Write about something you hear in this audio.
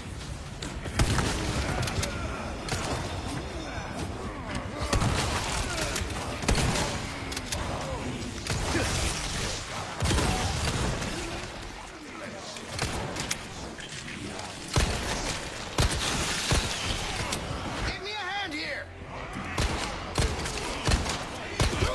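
Gunshots boom loudly, one after another.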